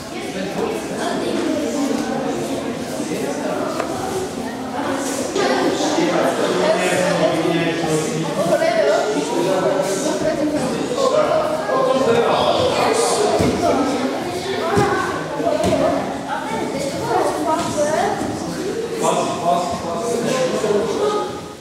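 Children chatter and call out in a large echoing hall.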